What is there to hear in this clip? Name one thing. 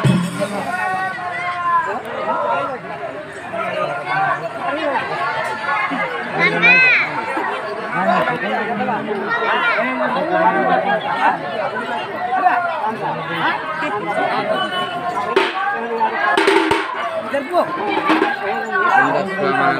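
Men beat hand drums.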